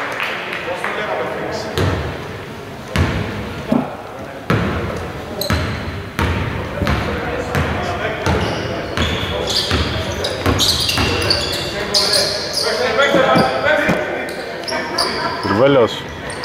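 A basketball bounces on a hard court in a large echoing hall.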